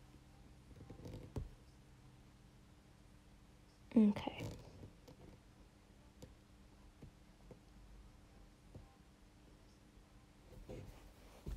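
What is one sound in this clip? Fingertips softly tap and brush against stretched fabric.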